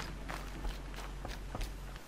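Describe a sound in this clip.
Footsteps thud on a wooden bridge.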